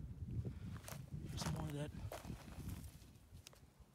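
Loose stones clatter as a rock is pulled from the ground.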